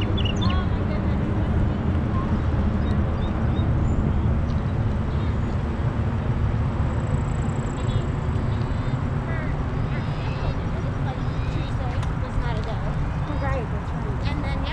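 Bicycle tyres roll on a paved path.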